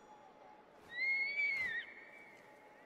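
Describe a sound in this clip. An eagle screeches overhead.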